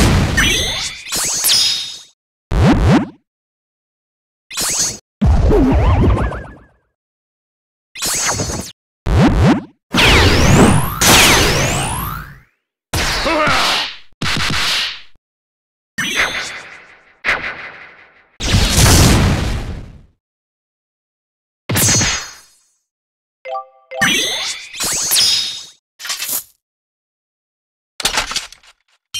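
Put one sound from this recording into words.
Punchy fight sound effects burst out in short blasts, with booms and whooshes.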